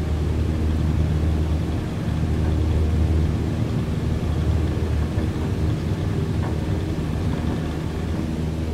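A single-engine piston propeller plane drones at full throttle on its takeoff roll, heard from inside the cabin.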